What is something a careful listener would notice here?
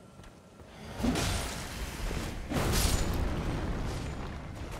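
A magic spell bursts with a loud shimmering whoosh.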